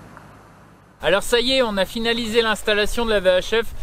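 A man speaks with animation close by.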